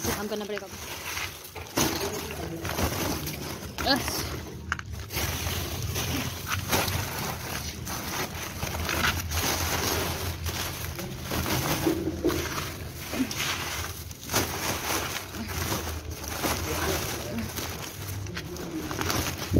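Plastic wrappers crackle as they are pushed into a sack.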